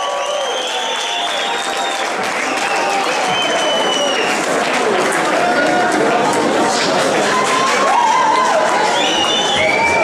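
An electric guitar plays a loud, bending lead.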